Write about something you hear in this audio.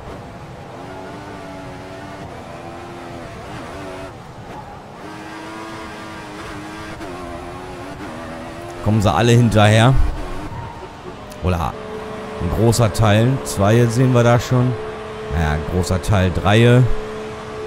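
A racing car engine whines at high pitch, rising and falling as the car shifts gears.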